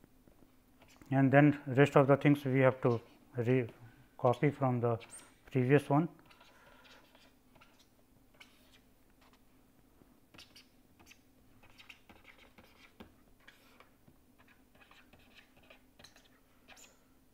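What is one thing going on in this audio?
A pen scratches softly as it writes.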